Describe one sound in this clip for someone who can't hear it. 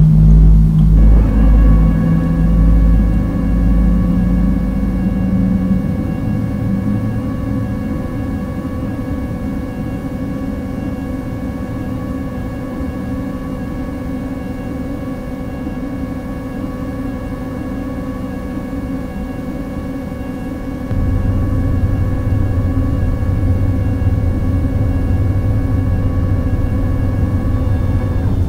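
A jet engine hums and whines steadily.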